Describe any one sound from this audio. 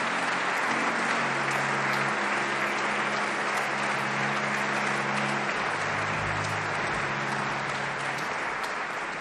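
A string ensemble plays slow, sustained chords in a large echoing hall.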